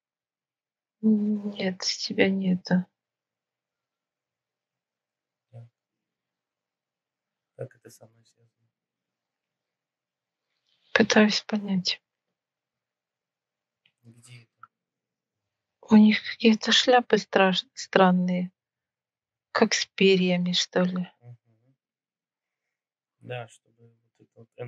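A woman speaks calmly in short phrases over an online call.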